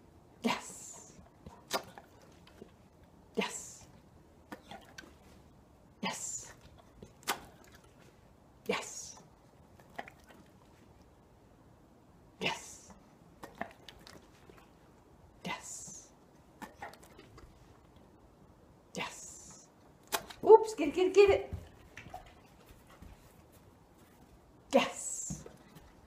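A dog snaps its jaws shut as it catches treats.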